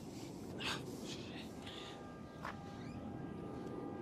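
A heavy wooden door swings open.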